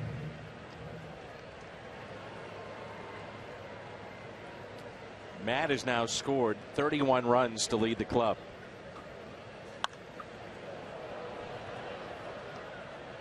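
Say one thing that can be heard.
A stadium crowd murmurs steadily outdoors.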